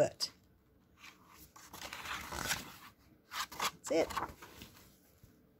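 Paper pages rustle and flip as a book's pages are turned.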